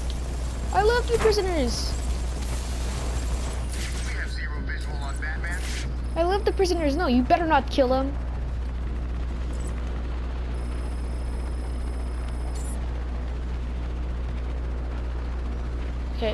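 A helicopter's rotor drones overhead.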